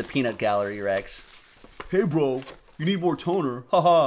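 Plastic wrapping crinkles as hands tear it open.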